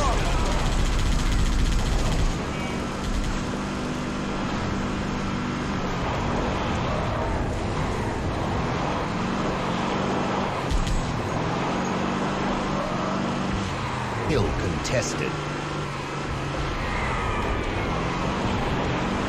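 A vehicle engine hums and revs steadily.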